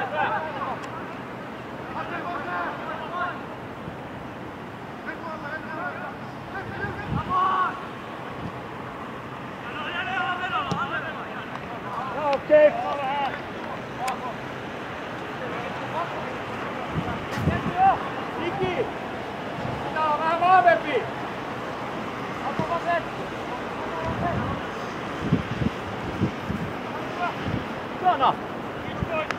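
Wind blows outdoors in gusts.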